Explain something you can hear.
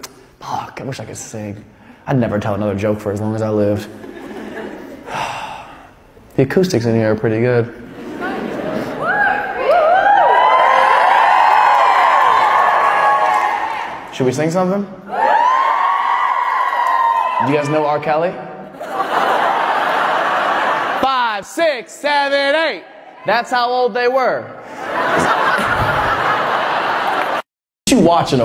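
A young man talks and sings into a microphone in a large echoing hall.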